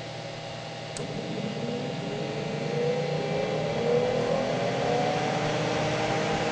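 A disc drive motor spins back up with a rising whine.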